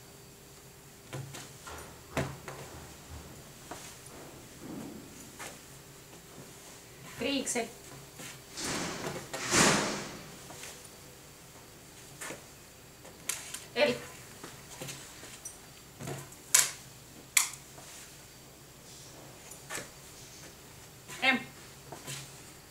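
Cloth rustles and swishes as hands fold clothing.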